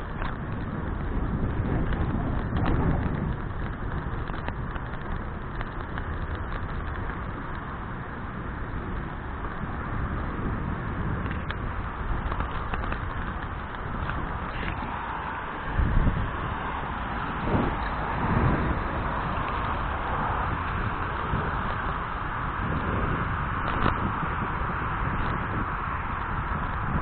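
Bicycle tyres roll and hum over a paved path.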